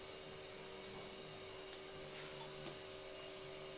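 Small metal instruments click and tick now and then.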